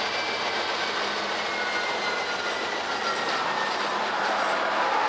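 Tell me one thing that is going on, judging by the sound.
Steel freight train wheels squeal against the rails.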